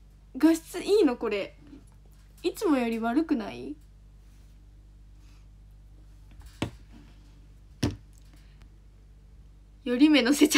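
A young woman talks animatedly and close up.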